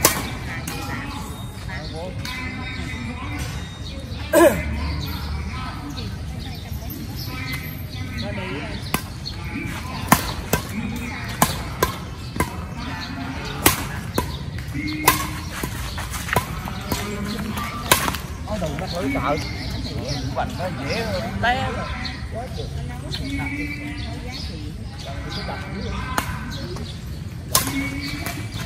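Men call out and chat during the game.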